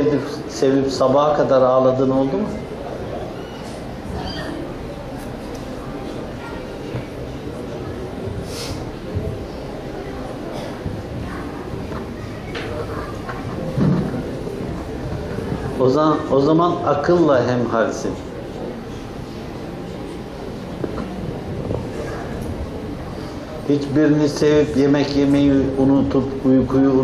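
An elderly man chants loudly in a melodic voice.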